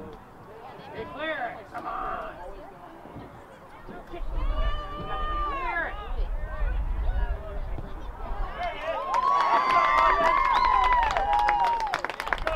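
A crowd of spectators cheers and shouts outdoors.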